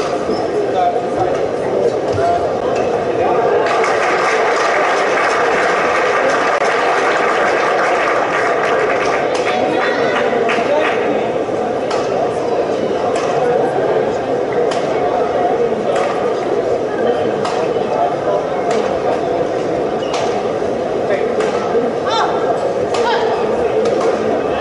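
A shuttlecock is struck sharply with rackets.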